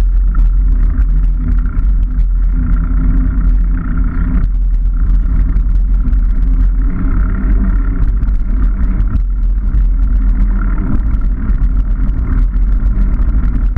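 Bicycle tyres roll and rattle over a rough path.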